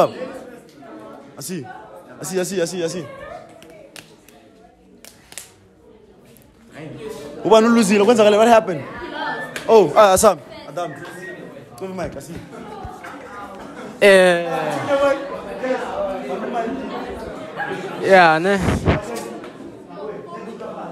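Young men talk loudly and with animation close by.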